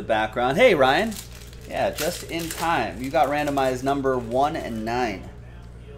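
Foil wrappers crinkle and rustle as a pack is torn open.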